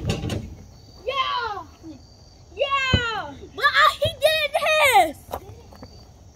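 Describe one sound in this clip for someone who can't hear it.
Young children shout and call out excitedly outdoors.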